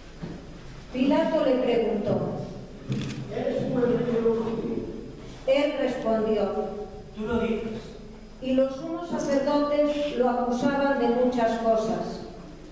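A woman sings loudly in a large echoing hall.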